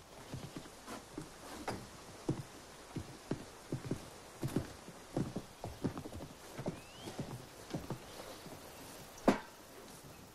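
Footsteps knock on wooden boards.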